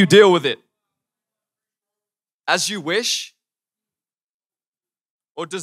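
A young man speaks calmly into a microphone, with short pauses.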